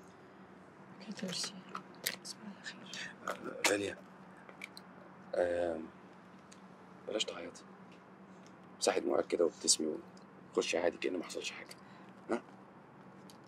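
A young man speaks softly nearby.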